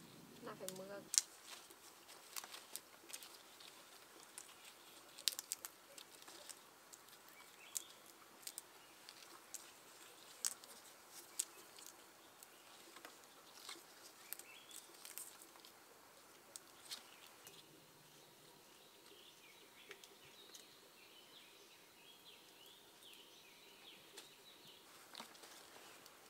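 Flower stems snap with small crisp clicks as they are picked.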